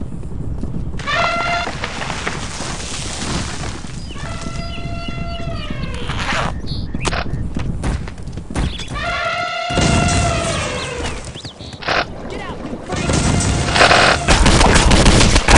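An explosion booms and fire roars.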